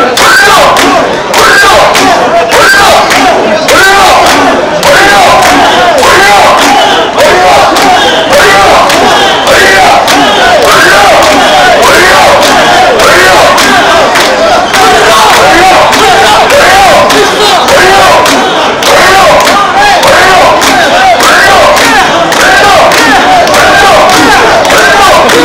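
A large crowd of men chants loudly and rhythmically outdoors.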